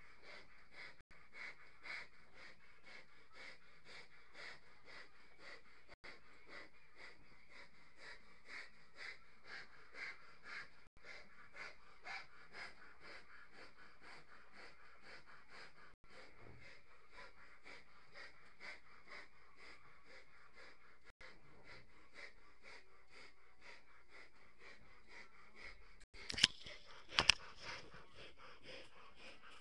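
Hands rub against balloons with a steady, rhythmic rubbery squeaking.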